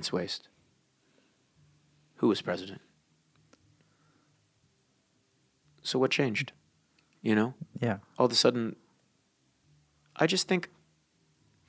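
A man speaks in short, emphatic phrases with long pauses, heard through a microphone.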